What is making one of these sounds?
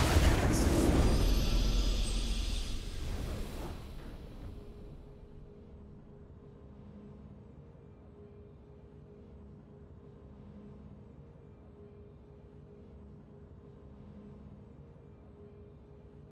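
A victory fanfare plays and fades out.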